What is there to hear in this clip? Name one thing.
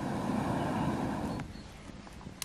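A kettle hisses loudly with escaping steam.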